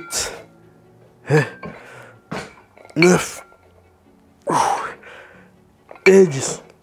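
A man grunts and groans with strain, close by.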